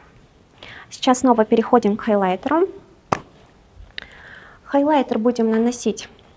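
A young woman speaks calmly and close up into a microphone.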